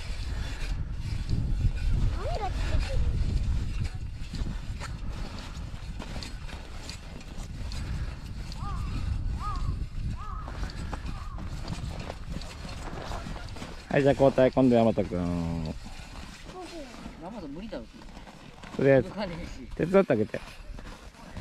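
An ice auger grinds into ice.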